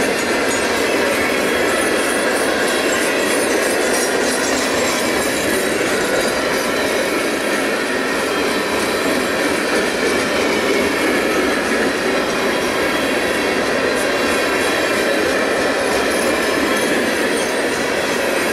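Wind blows outdoors in a snowstorm.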